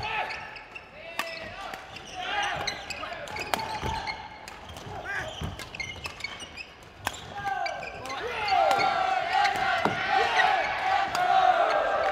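Sneakers squeak sharply on a hard floor, in a large echoing hall.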